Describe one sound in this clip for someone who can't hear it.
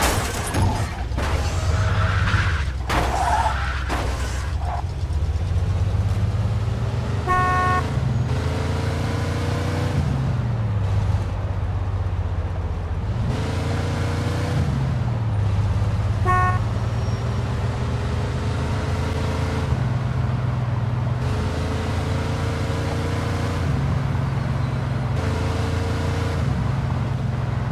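A car engine revs and shifts up through its gears.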